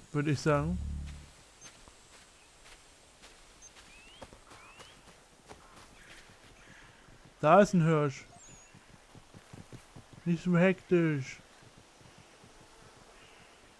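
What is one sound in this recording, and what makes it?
Footsteps rustle through grass and dry leaves.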